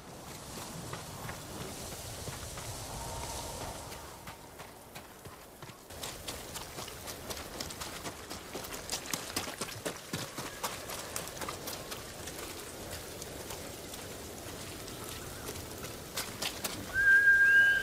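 Footsteps run quickly over wet ground.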